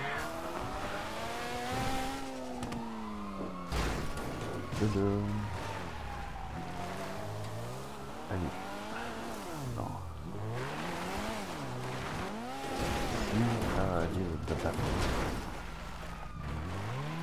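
A sports car engine revs hard, rising and falling in pitch.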